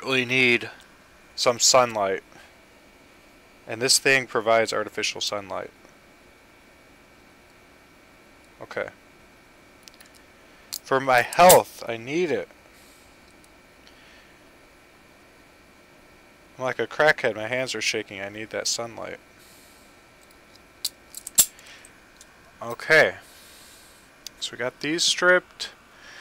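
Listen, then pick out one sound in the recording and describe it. A man talks calmly and close to a microphone, in bursts with pauses.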